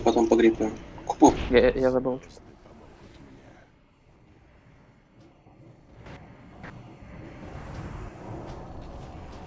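Magic spells crackle and boom in a video game battle.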